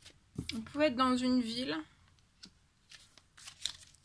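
A card is laid down softly on a table.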